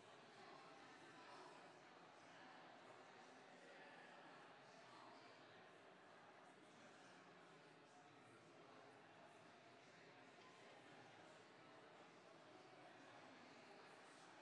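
A man speaks calmly through a microphone in a large echoing hall.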